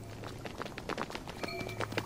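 Footsteps run across stone paving.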